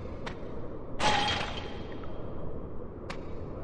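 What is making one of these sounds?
A wooden cage door rattles open.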